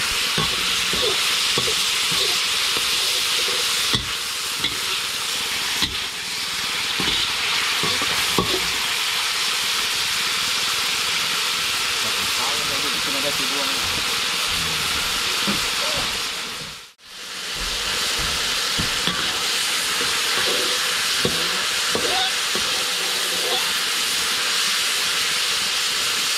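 Meat sizzles and hisses loudly in a hot wok.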